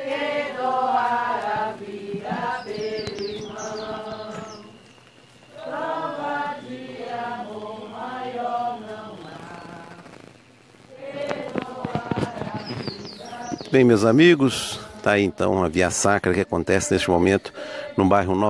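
A group of men and women sing a slow hymn together outdoors.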